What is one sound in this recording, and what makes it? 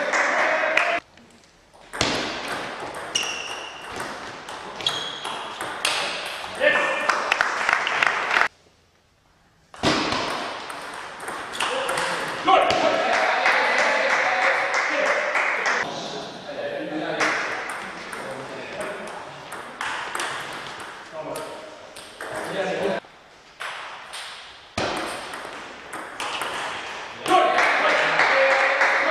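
A table tennis ball clicks back and forth between paddles and the table in a large echoing hall.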